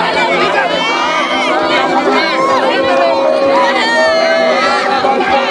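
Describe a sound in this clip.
A large crowd of men and women shout and cry out all at once, close by.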